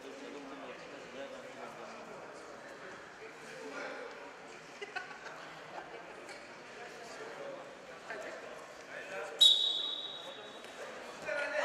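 Men and women chat quietly in the background of a large echoing hall.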